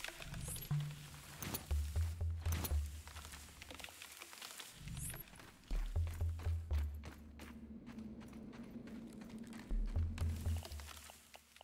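A tool strikes the ground with heavy, dull thuds.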